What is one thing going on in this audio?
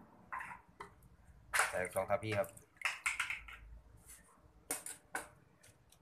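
A metal ladle clinks and scrapes against a pot.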